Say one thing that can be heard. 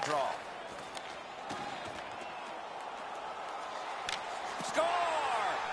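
A hockey stick strikes a puck with sharp clacks.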